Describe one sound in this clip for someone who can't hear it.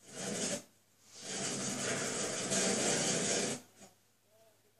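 An explosion rumbles through a television speaker.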